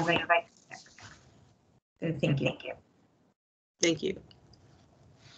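A man speaks calmly in short phrases over an online call.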